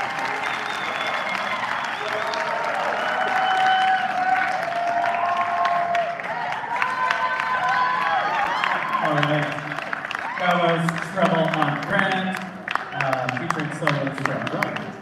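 Audience members cheer and whoop.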